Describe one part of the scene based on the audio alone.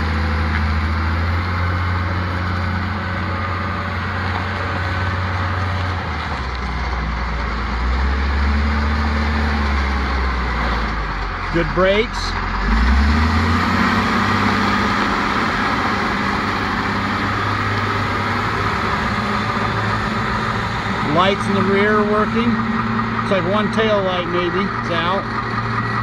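A diesel engine of a wheel loader idles and rumbles nearby.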